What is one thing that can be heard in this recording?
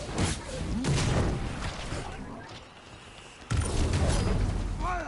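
Video game energy blasts and impacts burst loudly.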